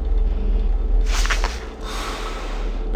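A mask is pulled on with a quick rustle.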